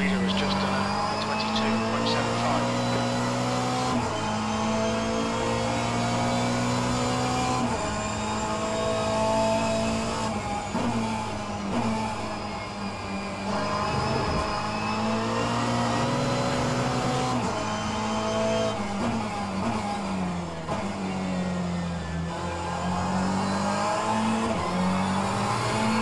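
A racing car engine roars and revs up and down through gear changes.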